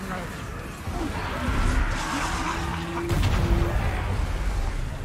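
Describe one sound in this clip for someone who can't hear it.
A magical whoosh bursts and rumbles.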